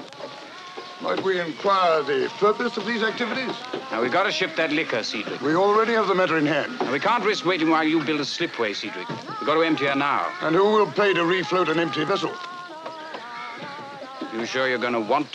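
A young man talks nearby in a calm voice.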